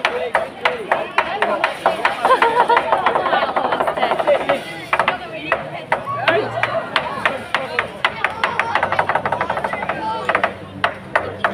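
A crowd chatters and cheers loudly outdoors.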